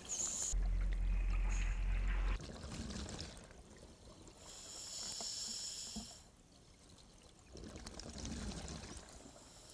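A diver's breathing gear hisses and bubbles rush out in slow, regular bursts underwater.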